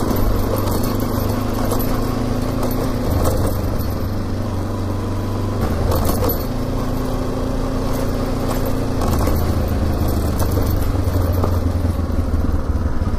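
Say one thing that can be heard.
A motorbike engine hums steadily, changing pitch now and then.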